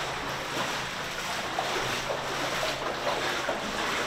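A man's boots slosh through shallow water.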